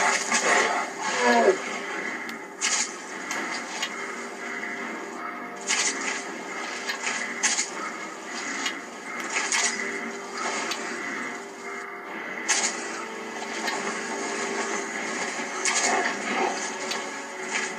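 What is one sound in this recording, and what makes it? A large beast growls.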